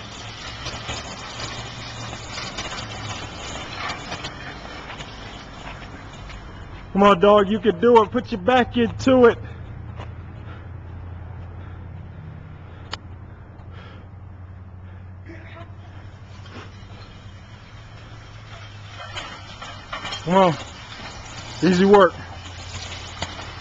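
A weighted sled scrapes across concrete.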